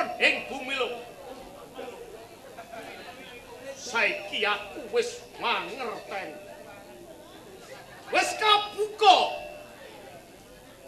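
A man speaks theatrically through a loudspeaker.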